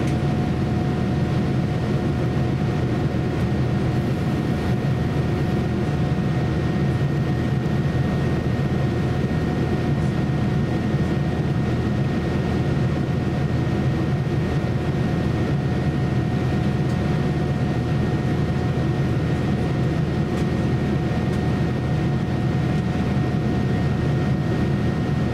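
A jet airliner's engines drone steadily from inside the cabin.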